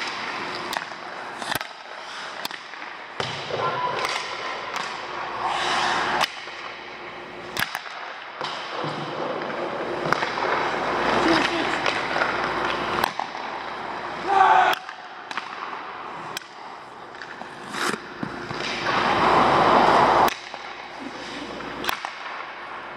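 Hockey pucks smack sharply.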